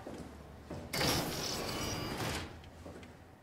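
A heavy sliding door hisses open.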